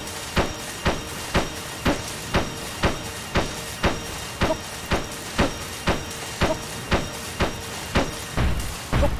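Footsteps tap quickly and evenly on stone.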